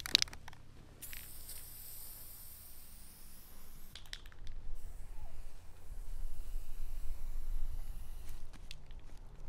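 A spray can hisses steadily.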